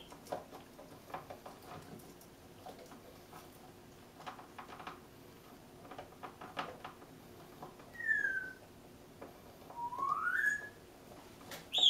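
A parrot chews and crunches on a toy.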